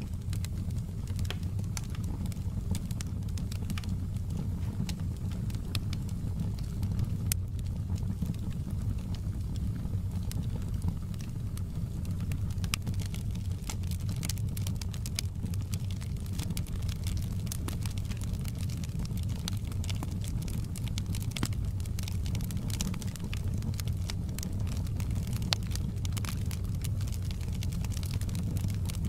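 Burning logs crackle and pop sharply.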